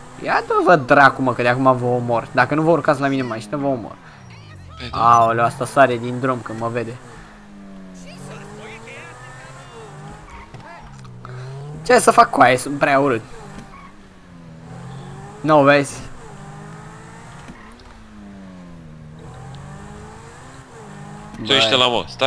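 A sports car engine revs and hums, rising and falling in pitch.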